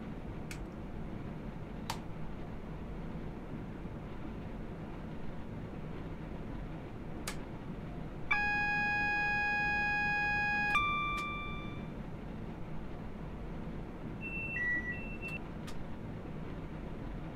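A train engine hums low and steady.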